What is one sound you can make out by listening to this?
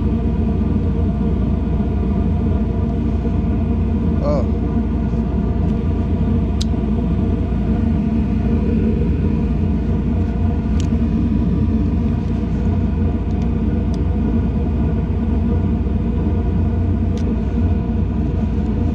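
A machine hums steadily and loudly nearby.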